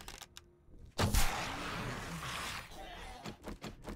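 A bowstring snaps as an arrow is loosed with a loud whoosh.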